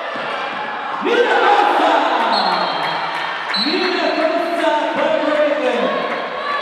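A crowd cheers loudly in a large echoing hall.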